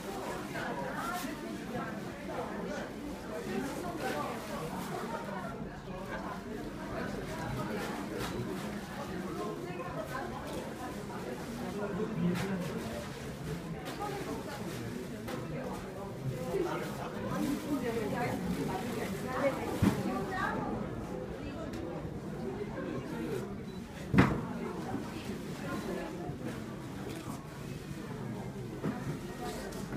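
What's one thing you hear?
Women chat quietly nearby.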